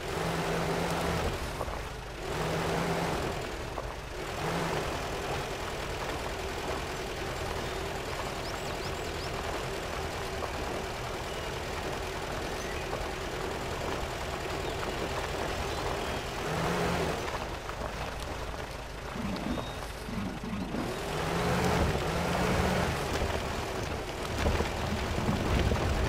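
A vehicle engine rumbles and strains steadily.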